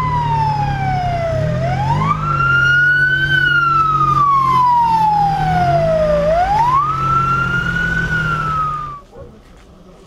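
An ambulance siren wails up and down close by.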